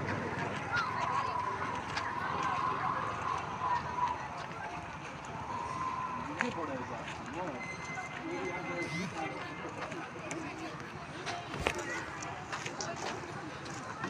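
Footsteps crunch on a dirt road.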